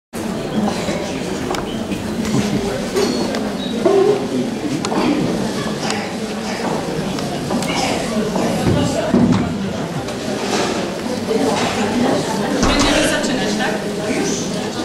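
An elderly woman speaks loudly on a stage, with echoes in a large hall.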